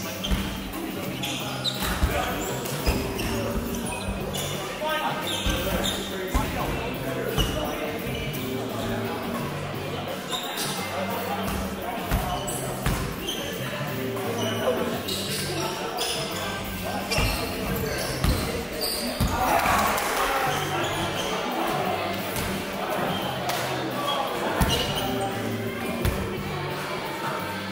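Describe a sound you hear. Sneakers squeak on the hall floor.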